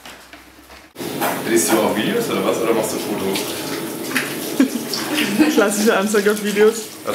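A woman talks and laughs with animation close by.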